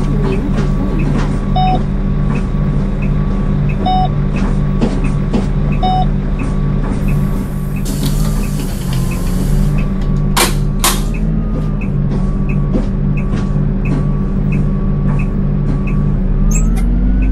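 A bus engine idles with a steady, throbbing rumble.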